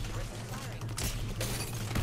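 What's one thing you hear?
A shotgun fires.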